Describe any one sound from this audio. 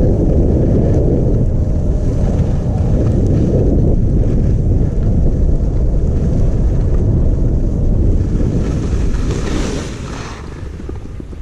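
Skis scrape and hiss over packed snow, then come to a stop.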